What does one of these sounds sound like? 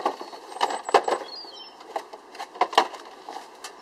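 A metal porch swing creaks and rattles as a man gets up from it.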